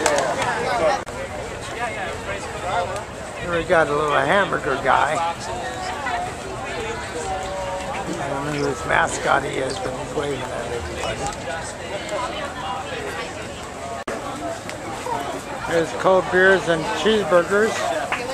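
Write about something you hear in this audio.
Men and women chatter nearby outdoors in a crowd.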